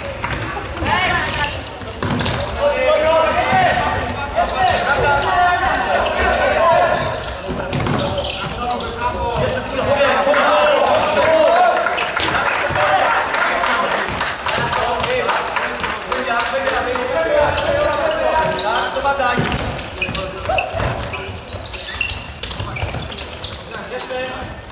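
A ball thuds as it is kicked across a hard floor.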